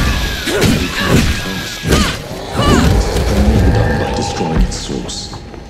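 Sword blows land with sharp, heavy hits.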